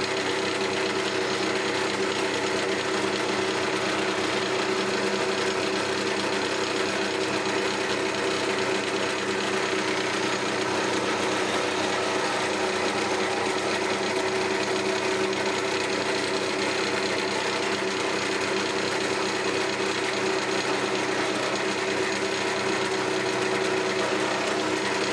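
A wood lathe runs with a steady motor hum.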